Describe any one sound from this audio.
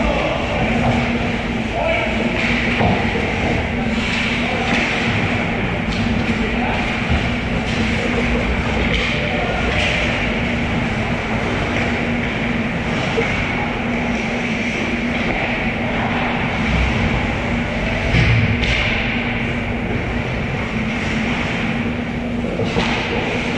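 Skates scrape and hiss on ice in a large echoing rink.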